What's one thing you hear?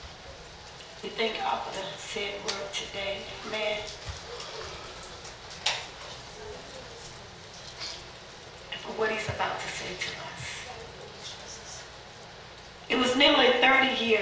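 A woman speaks with animation through a microphone in a room with a slight echo.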